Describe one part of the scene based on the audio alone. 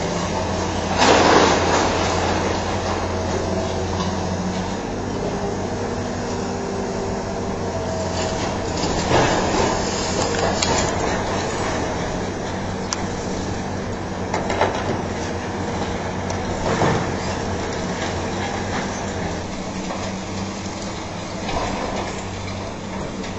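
Concrete rubble crashes down during demolition.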